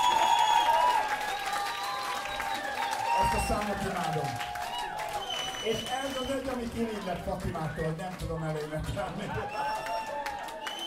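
A live band plays loudly in a room that echoes.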